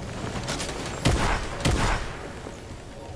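Gunshots from a game weapon fire in quick bursts.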